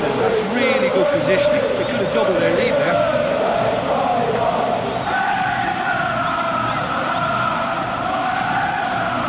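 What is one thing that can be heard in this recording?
A large stadium crowd roars and chants loudly throughout.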